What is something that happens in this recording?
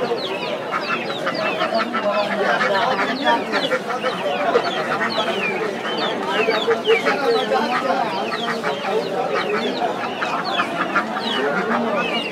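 A turkey gobbles.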